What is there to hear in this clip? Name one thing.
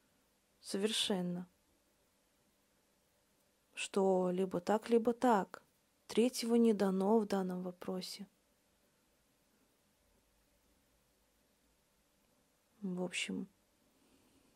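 A woman speaks calmly and clearly, close to a microphone, in short phrases with pauses.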